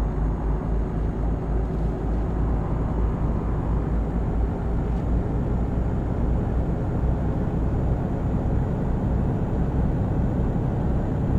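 Tyres roll steadily over a smooth road.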